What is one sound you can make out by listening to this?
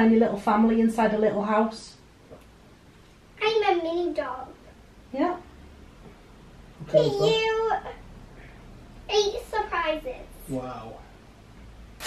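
A young girl talks with excitement close by.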